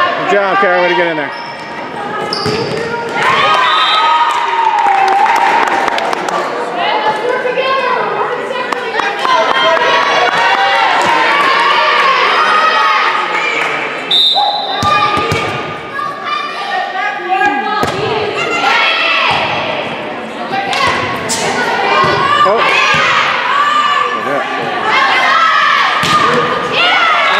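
Young women shout and cheer loudly in a large echoing gym.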